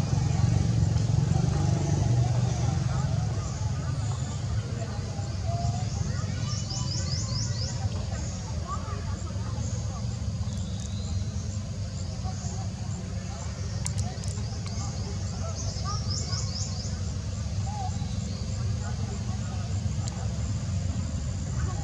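Small monkeys scramble softly over rocks.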